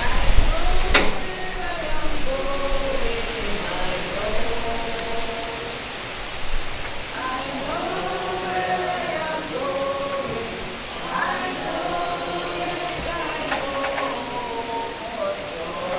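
A bugle plays a slow, mournful tune in the distance.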